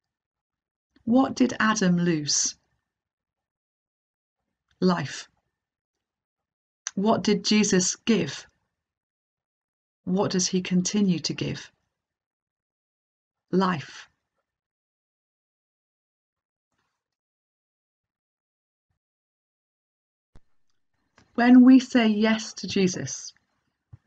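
A middle-aged woman speaks calmly and slowly into a microphone, with long pauses.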